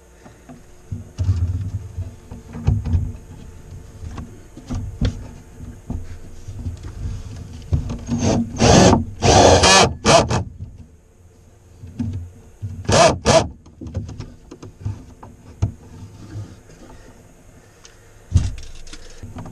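Wood knocks and creaks as a frame is handled.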